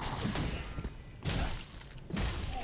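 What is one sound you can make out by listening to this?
A sword swishes through the air and strikes.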